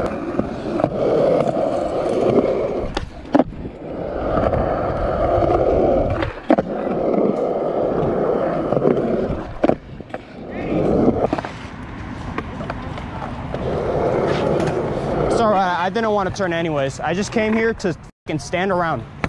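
Skateboard wheels rumble steadily over rough concrete, close by.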